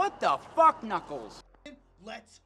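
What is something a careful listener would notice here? A man speaks close by.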